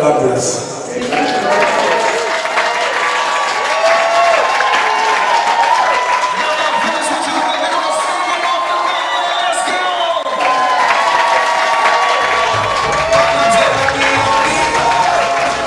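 A crowd cheers and sings along loudly.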